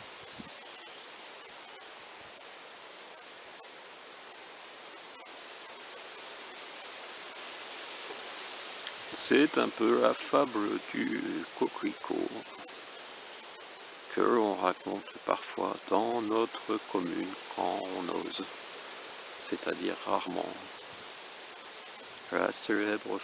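Wind blows through tall grass, rustling it softly.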